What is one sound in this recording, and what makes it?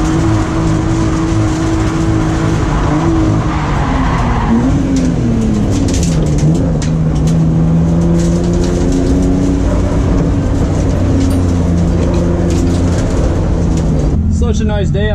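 A car engine roars and revs hard up and down.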